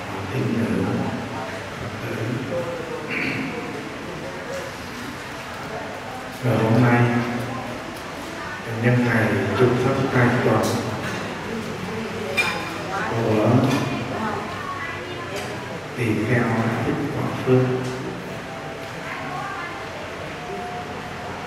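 A man chants a prayer in a low, steady voice through a loudspeaker.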